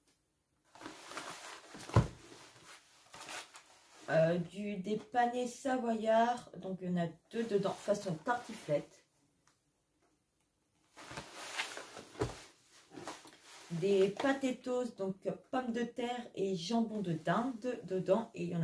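A cardboard box rustles in a woman's hands.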